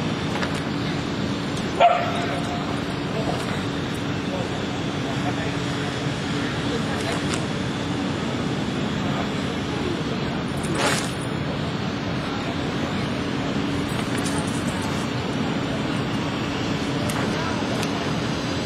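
Shoes scuff on hard pavement.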